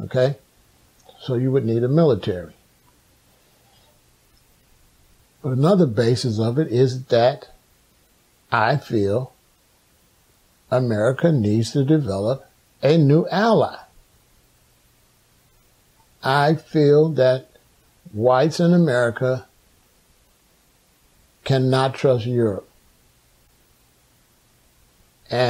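A middle-aged man speaks calmly and slowly close to a microphone, with long pauses.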